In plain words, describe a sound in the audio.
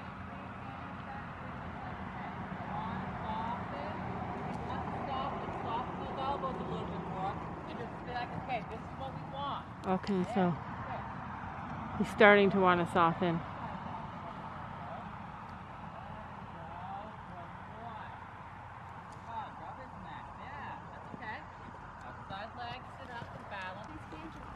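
A horse's hooves thud on soft dirt at a trot.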